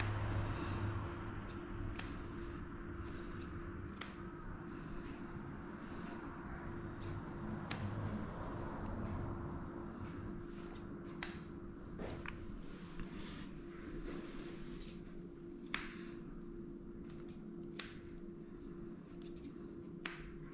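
Scissors snip through a dog's fur close by.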